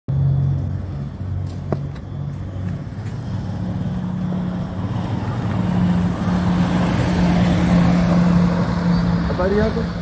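A motorcycle engine hums and grows louder as it approaches.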